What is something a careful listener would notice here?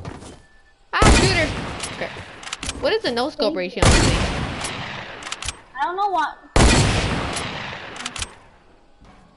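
A shotgun fires several loud, sudden blasts that ring out and slowly fade.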